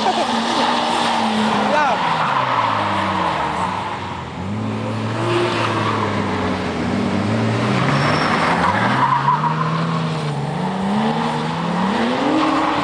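Tyres squeal on tarmac.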